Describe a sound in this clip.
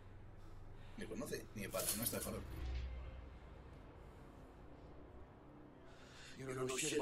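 A second man answers calmly in a deep voice.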